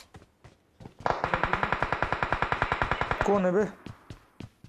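An automatic rifle fires a long rapid burst.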